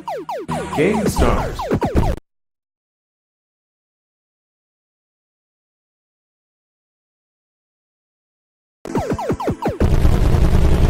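Electronic laser shots zap in quick bursts, each dropping in pitch.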